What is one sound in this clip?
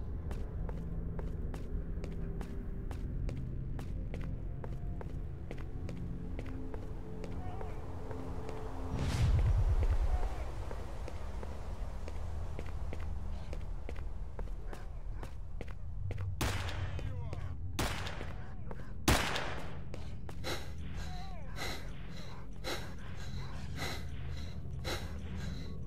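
Footsteps crunch steadily on a cracked road.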